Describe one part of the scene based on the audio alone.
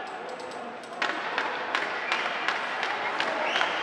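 Hockey sticks clack against the puck and boards.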